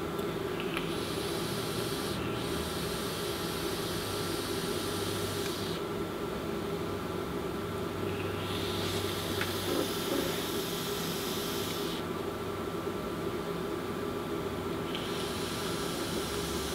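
An electronic cigarette sizzles softly as it is puffed.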